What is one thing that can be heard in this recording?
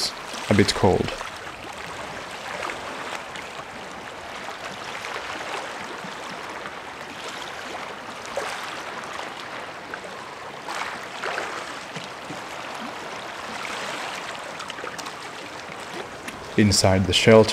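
Water splashes as a man wades and swims in calm sea.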